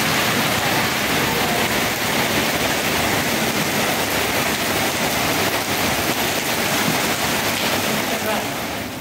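Steady rain falls and patters on a wet street outdoors.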